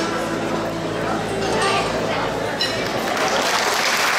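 Music plays over loudspeakers in a large hall and then stops.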